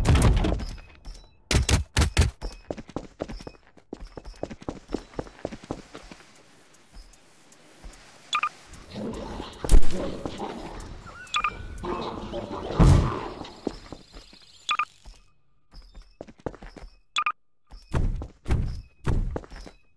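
A sci-fi gun fires short electric zaps.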